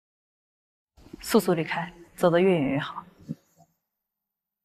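A young woman speaks quietly and coldly, close by.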